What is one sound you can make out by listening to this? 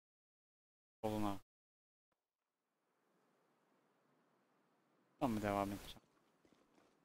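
A man speaks briefly into a headset microphone.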